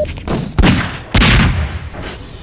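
A pistol fires a single shot.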